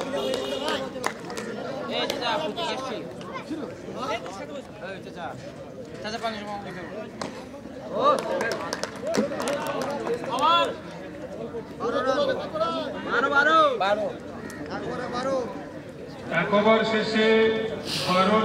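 Several men call out and talk outdoors in the open.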